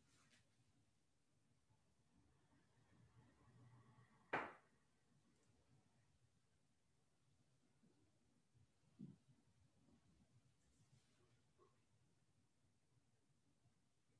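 A woman breathes slowly and softly nearby.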